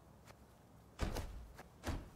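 A short interface click sounds as a menu box pops up.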